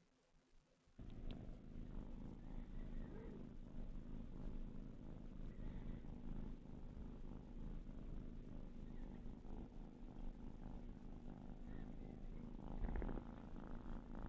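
A cat purrs loudly and steadily close by.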